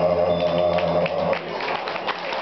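A group of men sings a held chord.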